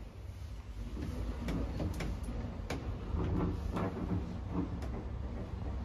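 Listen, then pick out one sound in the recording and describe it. A lift's metal folding gate rattles and clanks.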